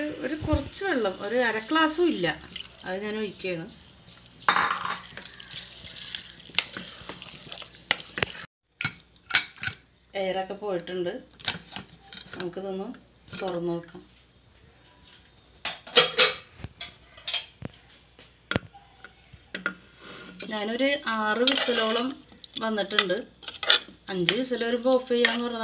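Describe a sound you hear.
A spatula scrapes and stirs thick food in a metal pot.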